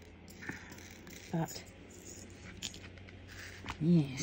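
Small beads rattle softly in a plastic tray.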